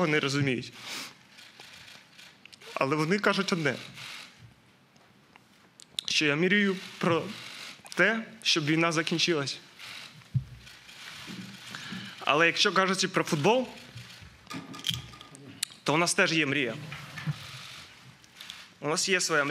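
A young man speaks haltingly and emotionally into a microphone, pausing often.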